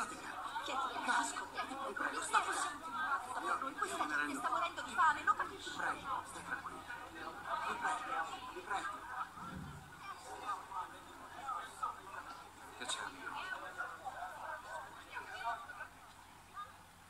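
A young woman speaks calmly, heard through an online call.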